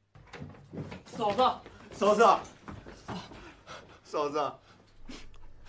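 A man calls out with urgency.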